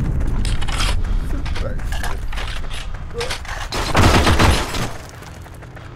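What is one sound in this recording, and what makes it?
A rifle is reloaded with metallic clicks and clacks.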